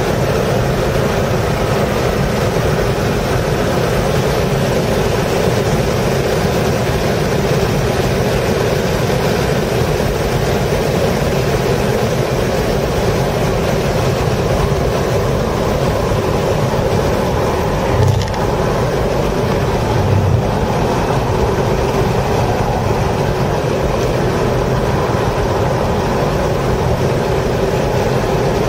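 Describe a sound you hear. A race car engine roars loudly from inside the cockpit, revving up and down through the gears.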